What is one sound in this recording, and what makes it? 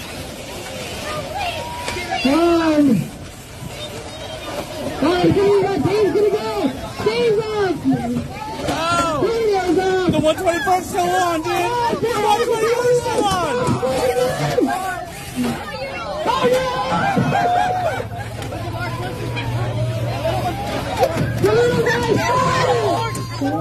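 A crowd murmurs and chatters.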